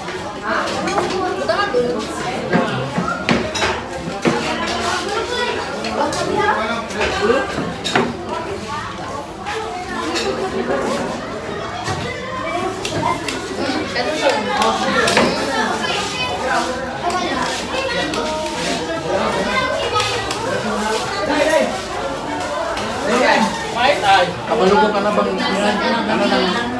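Several men and women chatter and talk over one another close by.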